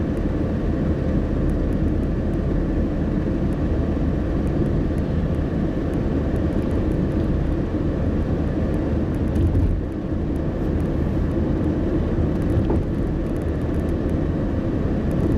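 Tyres roll on a road with a steady rumble.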